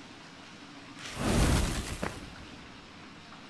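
A magical burst whooshes loudly.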